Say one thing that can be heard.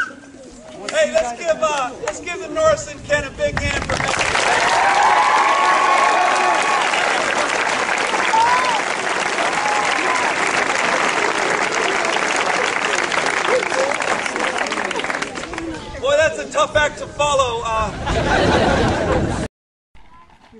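A man speaks loudly to the crowd nearby.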